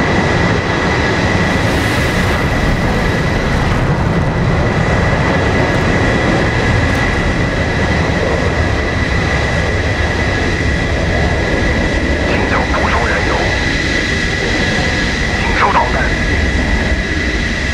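A jet engine hums and whines steadily.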